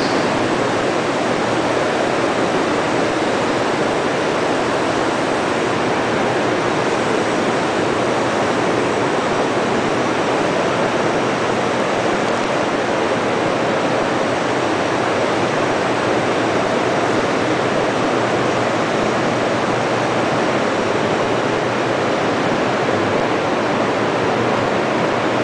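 Machinery hums and whirs steadily nearby.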